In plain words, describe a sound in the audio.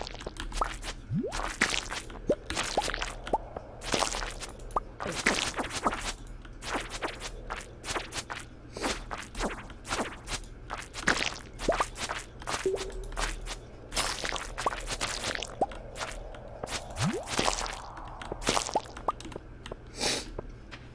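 Small items pop out with soft game chimes.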